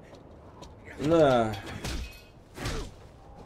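An elderly man groans and shouts with strain.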